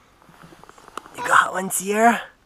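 A small child speaks briefly in a high voice.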